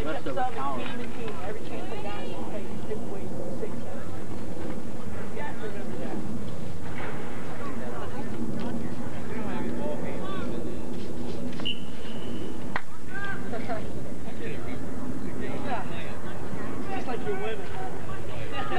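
Young men call out to each other across an outdoor playing field.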